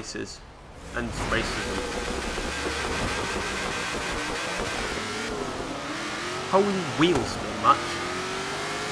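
Racing car engines roar and rev at high speed.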